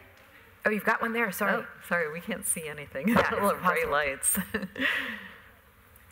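A second woman laughs and answers.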